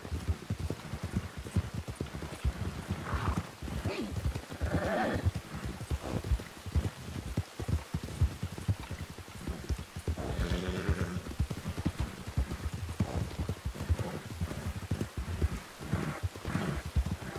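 Horse hooves thud steadily on a dirt trail.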